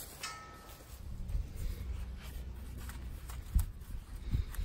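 A cloth rag rubs over metal.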